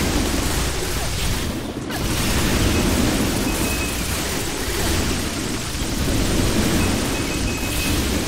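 Game spell effects crackle and burst rapidly.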